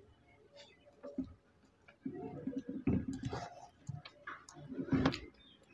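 Cutlery clinks and scrapes against plates.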